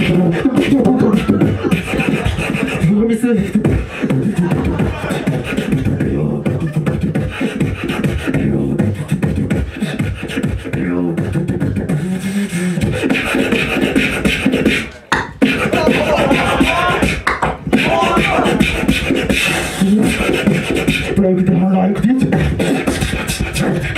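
A beat with a steady thumping bass plays through loudspeakers.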